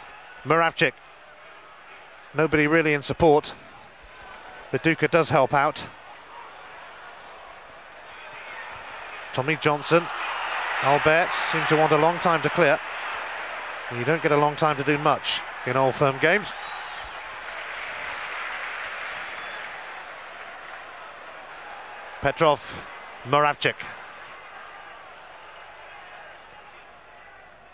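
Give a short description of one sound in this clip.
A large crowd roars and cheers in a big stadium, swelling and then slowly fading.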